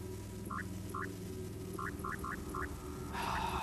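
Short electronic beeps sound as menu options are selected.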